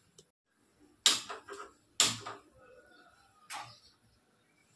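A gas lighter clicks several times.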